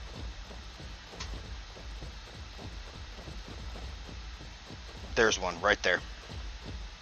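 Large wings flap with steady low thumps.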